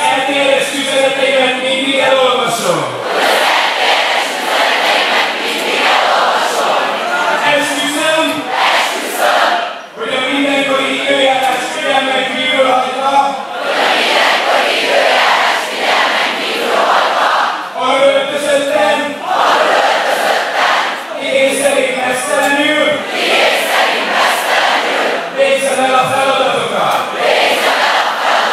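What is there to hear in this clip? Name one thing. A large crowd sings and chants loudly in unison.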